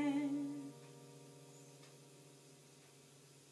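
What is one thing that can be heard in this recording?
An acoustic guitar chord rings out and fades.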